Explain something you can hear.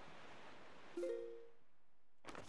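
A short chime rings as a menu opens.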